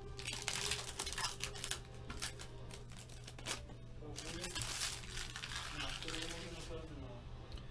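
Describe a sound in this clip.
Foil card packs crinkle and rustle as they are torn open.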